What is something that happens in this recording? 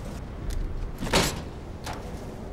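A heavy metal crate is knocked over with a loud clang.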